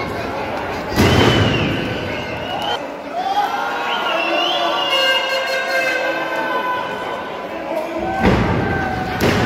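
A wrestler slams onto the ring mat with a heavy thud.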